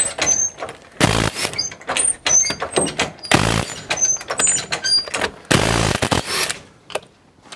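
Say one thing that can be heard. An impact wrench whirrs in short bursts.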